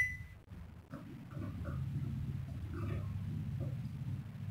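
A microwave hums steadily as it runs.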